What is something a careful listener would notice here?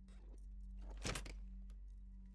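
A heavy case is set down on a counter with a thud.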